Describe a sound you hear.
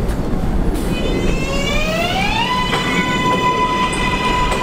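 A train's electric motors whine, rising in pitch and then holding a steady tone.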